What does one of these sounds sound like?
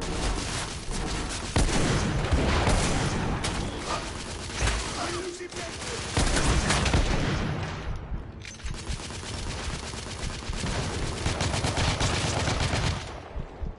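Explosions rumble in the background of a battle.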